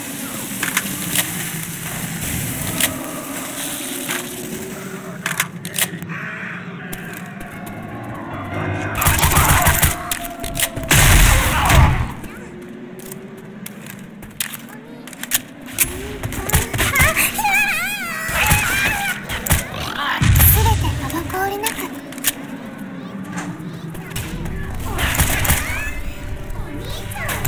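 Gunshots fire in rapid bursts, close by.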